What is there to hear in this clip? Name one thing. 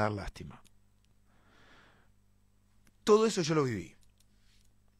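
A man speaks close into a microphone, in short expressive bursts.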